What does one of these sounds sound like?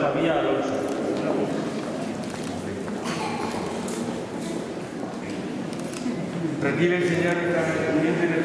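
A man speaks calmly nearby in an echoing room.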